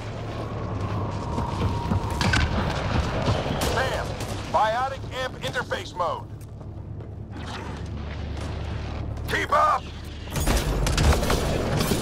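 Rapid gunfire bursts out in short volleys.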